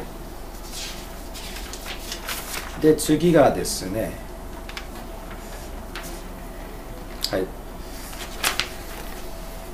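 Paper sheets rustle and flip.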